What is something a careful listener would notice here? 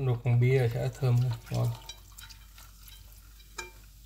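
Liquid pours from a bottle into a pot.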